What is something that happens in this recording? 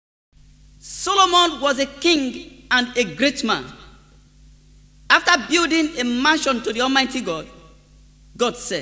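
A man sings with feeling.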